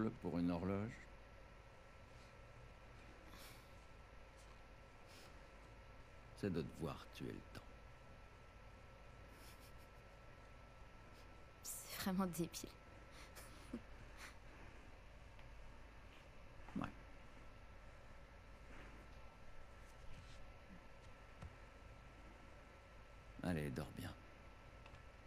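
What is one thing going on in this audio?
A man speaks calmly and warmly, close by.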